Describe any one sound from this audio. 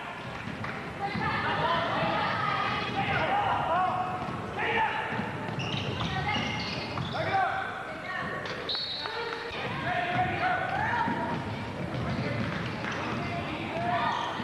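A crowd of spectators calls and cheers in a large echoing gym.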